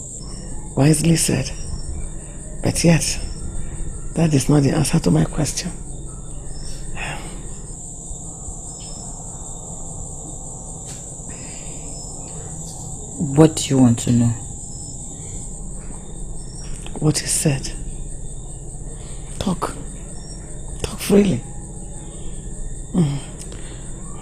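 An elderly woman sobs and speaks in a tearful, trembling voice close by.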